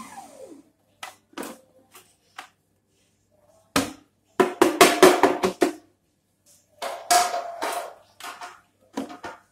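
A plastic jar lid clicks and knocks as it is handled.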